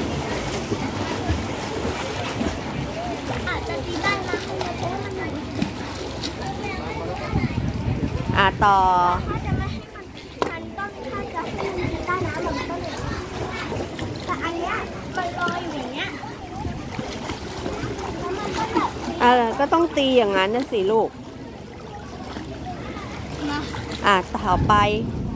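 Water splashes and sloshes as a child moves in a pool.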